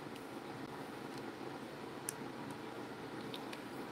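A plastic bottle cap clicks and twists open.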